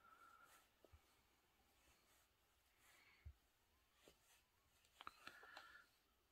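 A metal crochet hook clicks softly against yarn.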